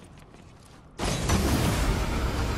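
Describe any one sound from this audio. A zipline rushes and whirs loudly.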